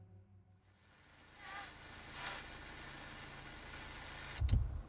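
A car radio crackles on as a knob turns.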